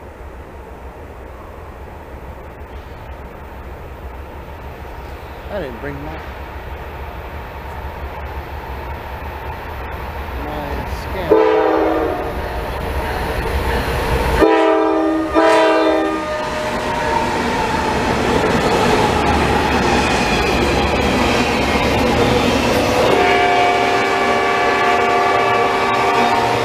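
A train rumbles closer and roars past on the tracks.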